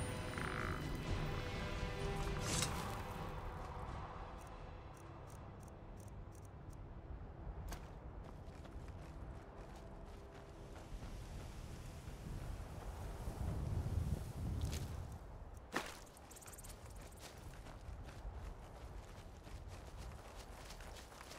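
Armoured footsteps crunch over dry grass and gravel.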